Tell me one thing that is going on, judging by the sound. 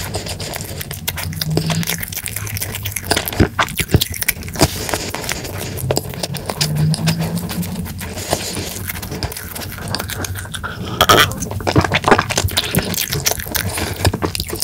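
A young man chews food with wet, smacking sounds close to a microphone.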